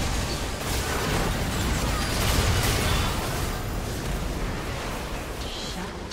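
Spell effects in a video game crackle and burst during a fight.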